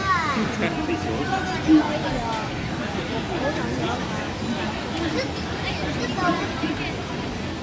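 Electronic game music and chiming sound effects play from an arcade machine's loudspeaker.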